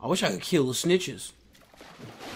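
A young man speaks loudly into a close microphone.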